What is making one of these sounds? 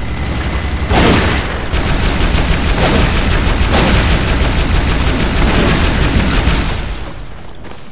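A heavy energy gun fires in rapid, loud bursts.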